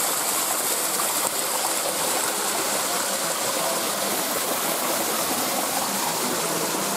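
Water splashes steadily down a small waterfall close by.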